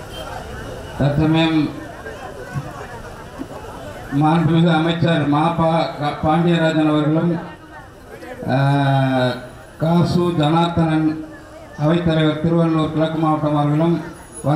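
A man sings loudly into a microphone through a loudspeaker.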